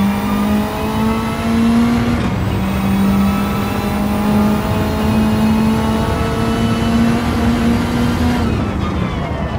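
A race car engine roars at high revs, rising in pitch through each gear.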